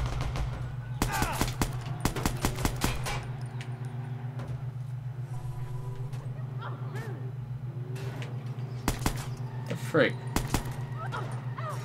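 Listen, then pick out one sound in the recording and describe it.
An assault rifle fires in bursts.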